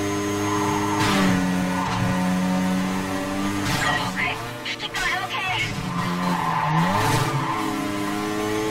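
Tyres screech as a car slides through corners.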